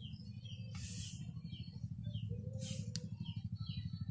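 A man rakes dry grass with a scraping rustle.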